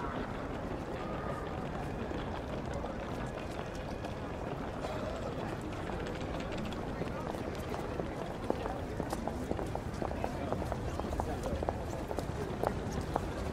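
Many footsteps clatter on pavement.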